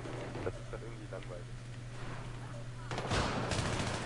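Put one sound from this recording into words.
A rifle fires a few shots.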